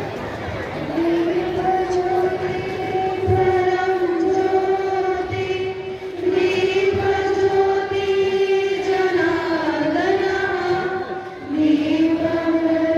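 A group of people sings together in unison.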